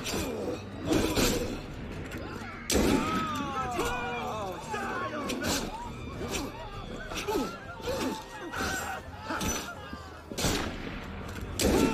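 Swords clash and bodies thud during a fight.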